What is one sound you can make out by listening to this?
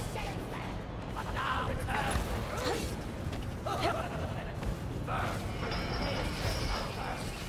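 Blades whoosh through the air in quick swings.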